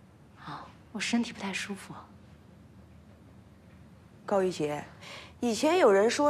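A young woman answers softly and politely.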